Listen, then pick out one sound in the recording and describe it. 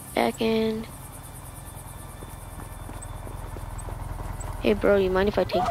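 A motorcycle engine drones as it draws near.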